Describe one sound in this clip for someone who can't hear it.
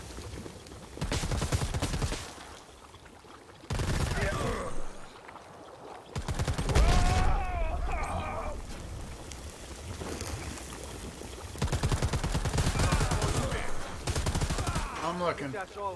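An automatic rifle fires rapid bursts at close range.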